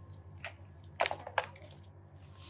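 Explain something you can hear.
A plastic bag crinkles as it is dropped into a plastic basket.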